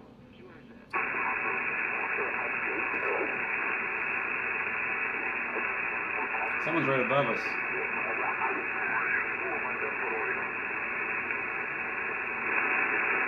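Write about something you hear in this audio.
A radio hisses loudly with static.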